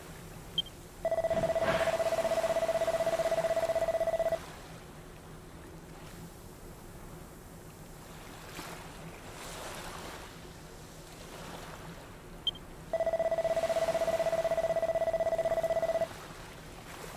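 Rapid electronic blips chatter steadily.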